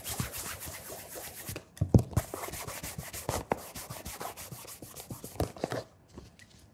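A cloth rubs against leather.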